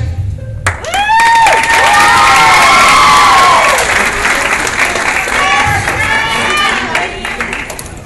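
A crowd cheers and screams loudly in an echoing hall.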